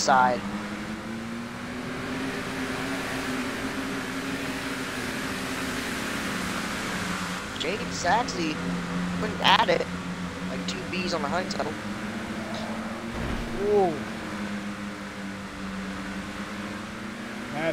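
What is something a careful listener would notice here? Racing car engines drone steadily.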